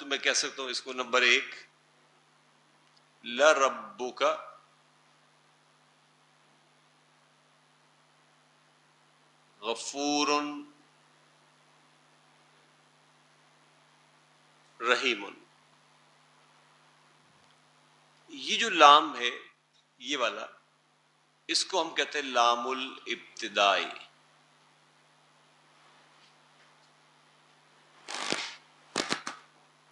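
An elderly man speaks calmly through a lapel microphone, in short phrases with pauses.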